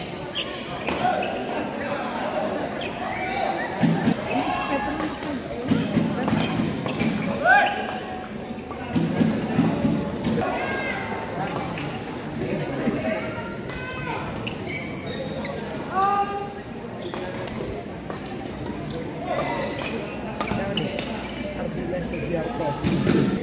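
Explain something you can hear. Players' feet thud and shuffle quickly on a court floor.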